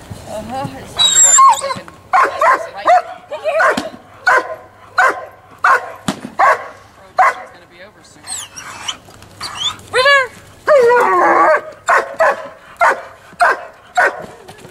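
A dog barks loudly and repeatedly.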